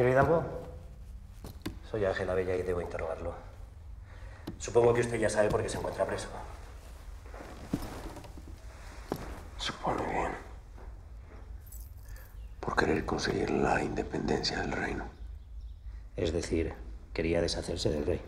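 A middle-aged man speaks slowly and gravely nearby.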